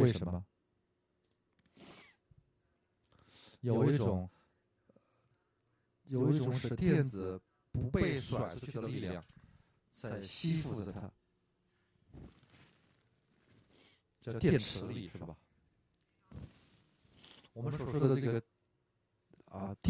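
An elderly man speaks with animation, heard through a microphone.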